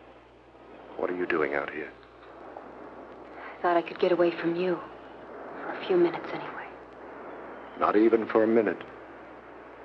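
A man speaks softly close by.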